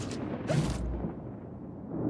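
Footsteps splash through shallow liquid.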